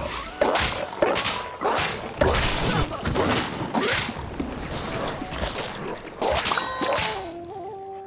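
Cartoonish weapons fire in quick bursts with sharp impact effects.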